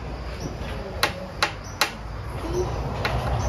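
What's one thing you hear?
Small objects click sharply on a ledge.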